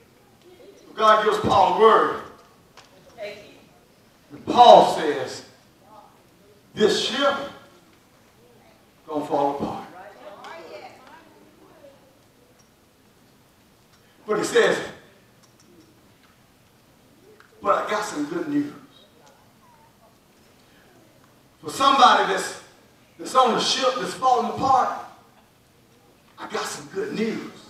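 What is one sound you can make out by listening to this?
A man preaches into a microphone in short, forceful bursts with pauses between, heard in a room with some echo.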